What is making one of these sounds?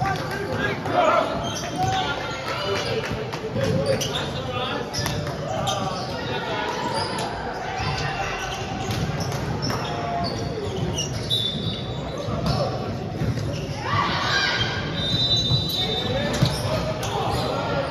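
Many people shout and chatter in a large echoing hall.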